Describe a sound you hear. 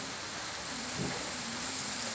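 Liquid is poured into a hot pan.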